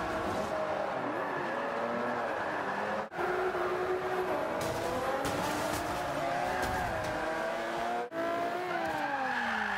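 A racing car engine revs high and shifts pitch as it drifts.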